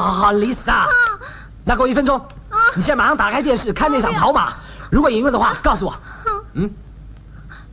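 A woman speaks loudly and tearfully, close by.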